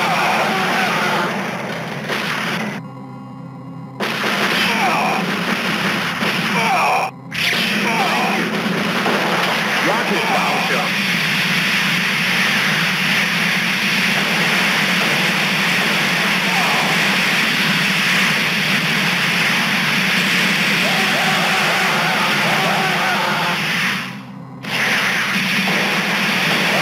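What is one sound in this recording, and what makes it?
Upbeat video game music plays.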